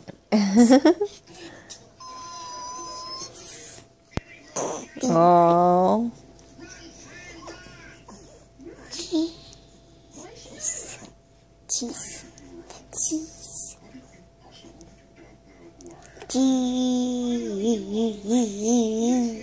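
A baby coos and babbles up close.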